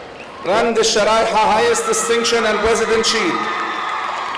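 A man announces through a loudspeaker in a large echoing hall.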